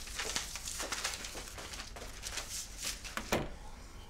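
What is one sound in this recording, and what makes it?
Papers rustle as a man shuffles them.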